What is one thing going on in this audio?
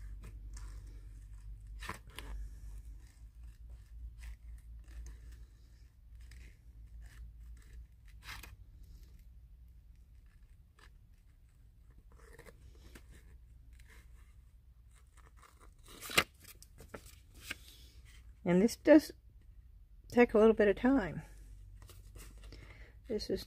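Scissors snip through paper with small crisp clicks.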